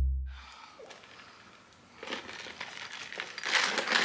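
A woman sips a drink through a straw.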